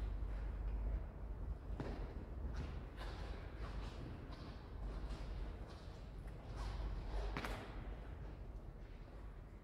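Footsteps tread across a hard floor.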